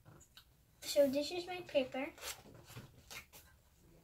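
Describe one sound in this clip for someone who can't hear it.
Paper rustles as a sketchbook is lifted.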